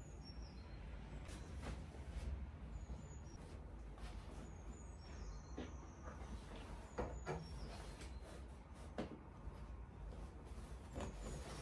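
Bedding rustles and swishes as a duvet is spread over a bed.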